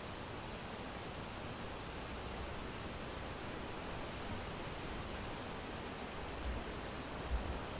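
Wind blows steadily through pine trees outdoors.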